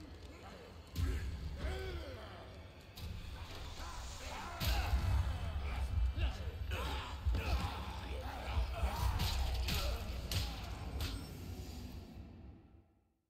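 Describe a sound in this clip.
Heavy blows and thuds land in a scuffle.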